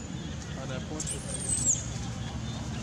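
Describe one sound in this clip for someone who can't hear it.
A young monkey shrieks shrilly during a scuffle.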